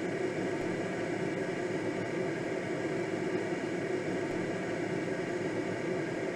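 Wind rushes steadily past a glider in flight.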